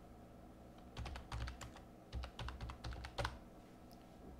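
Keyboard keys click in quick bursts of typing.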